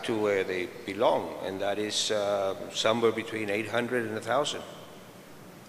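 A middle-aged man speaks with animation into a microphone, heard through loudspeakers in a large hall.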